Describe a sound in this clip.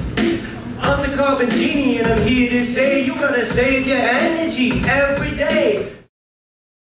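Young women and a man sing together with energy on stage.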